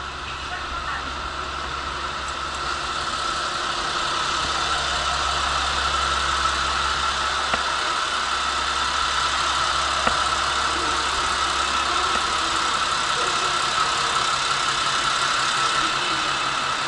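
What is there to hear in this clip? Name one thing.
A diesel train engine idles nearby with a low, steady rumble.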